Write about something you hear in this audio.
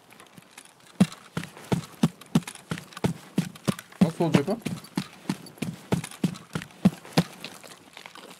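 Footsteps crunch on gravel at a steady walking pace.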